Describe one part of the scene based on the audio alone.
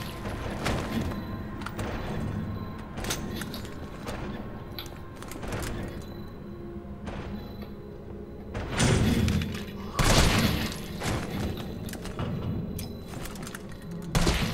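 Heavy footsteps tread on a hard floor.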